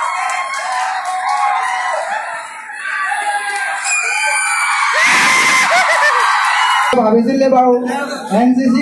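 A crowd of children and adults shouts and cheers loudly nearby.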